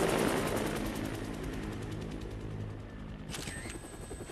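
A helicopter's rotor thuds loudly overhead.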